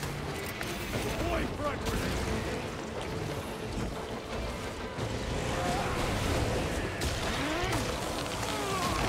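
Heavy weapons fire and clash in a loud fight.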